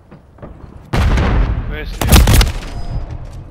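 A loud explosion booms close by.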